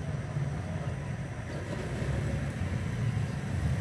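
A motorcycle engine rumbles as it rides closer.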